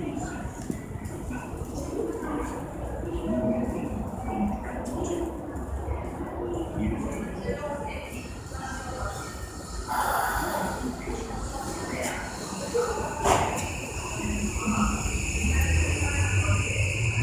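A train rolls slowly in with a low rumble.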